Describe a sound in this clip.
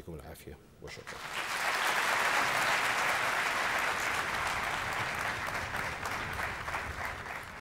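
A large audience applauds loudly in a big echoing hall.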